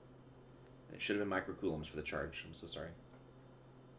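A man speaks calmly into a microphone, explaining.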